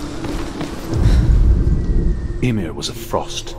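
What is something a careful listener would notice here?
A deep rumbling boom swells and fades.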